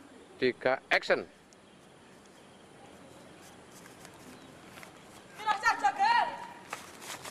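A boy talks with animation close by, outdoors.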